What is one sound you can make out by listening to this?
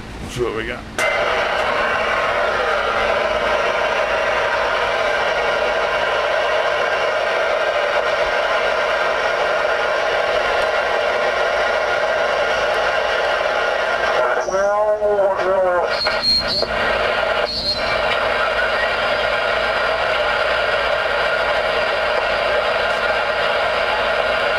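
A radio hisses with loud, steady static.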